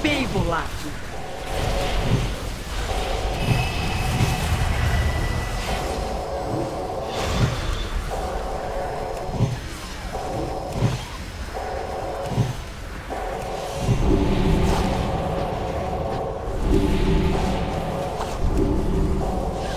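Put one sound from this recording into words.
Magic blasts and weapon hits thump and crackle in a fantasy battle.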